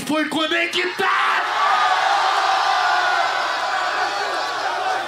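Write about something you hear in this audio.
A large crowd cheers and roars.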